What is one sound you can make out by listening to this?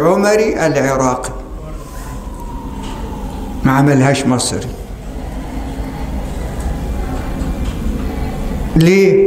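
An elderly man speaks slowly and calmly into a microphone, in a reverberant hall.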